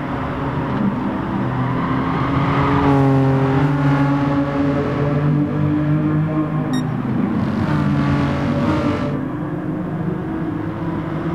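A racing car engine roars loudly and shifts pitch as it accelerates and slows.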